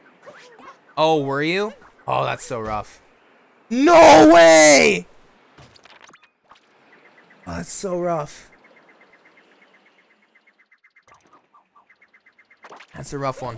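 A young man speaks in short bursts with animation into a microphone, close by.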